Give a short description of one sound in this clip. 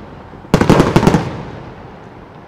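Fireworks crackle loudly in a rapid burst.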